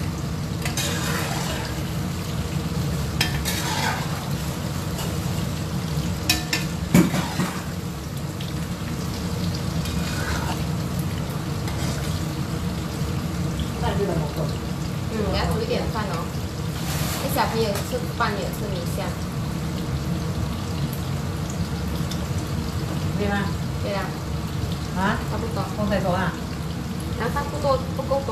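A metal spatula scrapes and clinks against a wok.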